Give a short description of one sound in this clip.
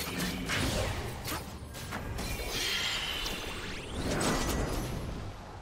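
Magical blasts, whooshes and hits from a video game battle crackle and burst rapidly.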